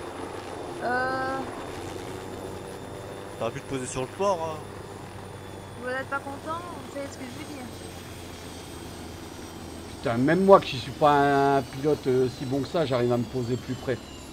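A helicopter engine hums steadily with whirring rotor blades.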